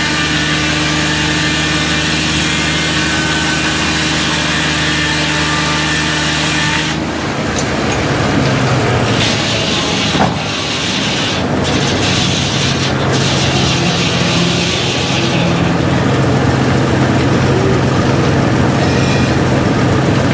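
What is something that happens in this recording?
A large circular saw whines as it spins.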